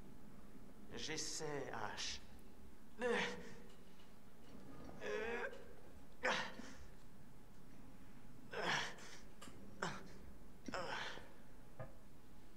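A young man speaks softly nearby.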